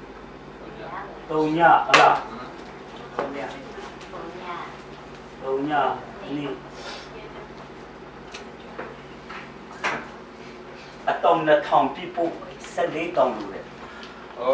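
A middle-aged man speaks calmly and haltingly in a room, as if teaching.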